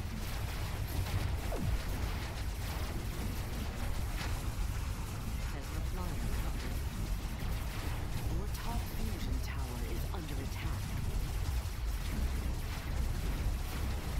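Laser weapons fire in short, sharp bursts.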